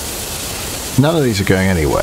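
A steam train whistle blows loudly.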